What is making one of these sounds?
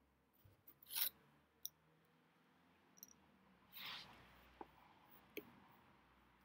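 Glasses click softly as they are handled.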